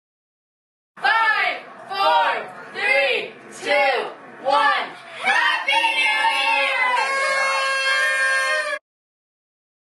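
Children blow toy party horns in short repeated bursts, then hold a long blast.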